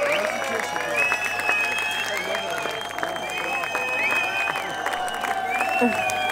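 A crowd cheers nearby.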